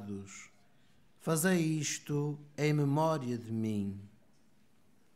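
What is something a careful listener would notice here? A man chants in a steady sung voice through a microphone.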